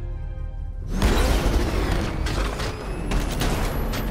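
A vehicle engine revs and roars.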